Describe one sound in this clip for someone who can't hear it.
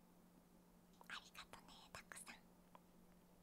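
A young woman speaks softly and cheerfully into a close microphone.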